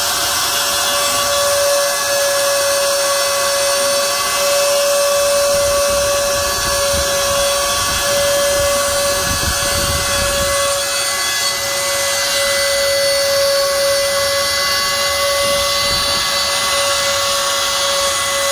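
A machine router spindle whines steadily at a high pitch.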